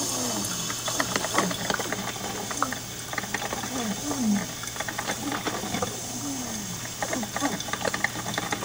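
A coffee maker gurgles and sputters as it brews.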